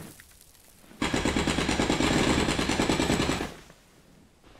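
A heavy mechanical gauntlet rumbles and whirs loudly.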